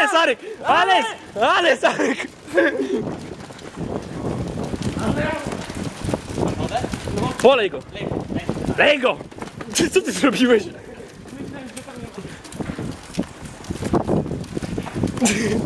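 Bicycle tyres rattle over cobblestones as cyclists ride past.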